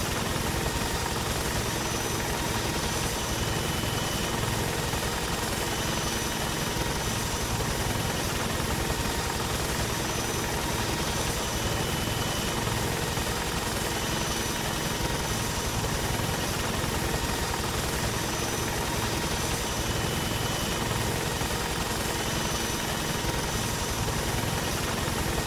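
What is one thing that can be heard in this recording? A helicopter's rotor thumps and its engine roars steadily.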